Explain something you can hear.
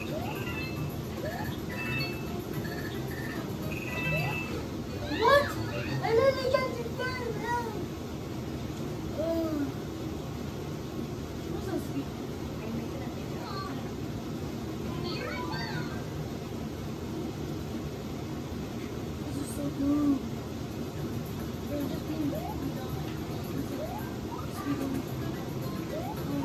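Short springy video game sound effects chirp from a television.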